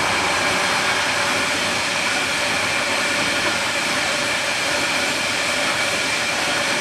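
Hopper wagons of a freight train roll past on steel rails.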